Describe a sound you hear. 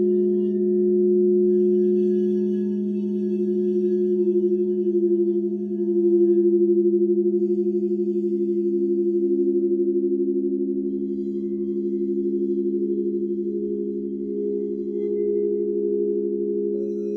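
A mallet rubs around the rim of a singing bowl, making its tone swell and waver.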